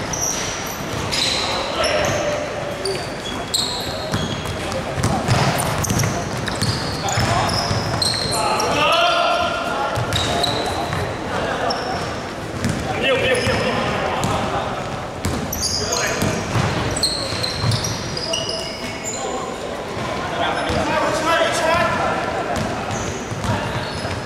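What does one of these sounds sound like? Sneakers squeak sharply on a hardwood floor, echoing in a large hall.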